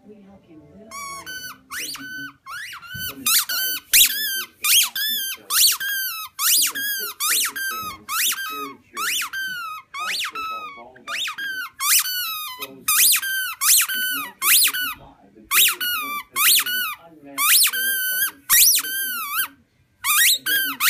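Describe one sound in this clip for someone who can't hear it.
A squeaky toy ball squeaks over and over as a dog chews it.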